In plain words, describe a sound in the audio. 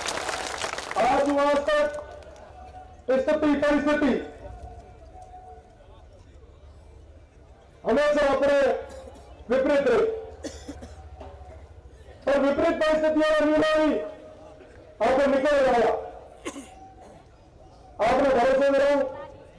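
A young man shouts a speech in short, forceful bursts through a loudspeaker outdoors.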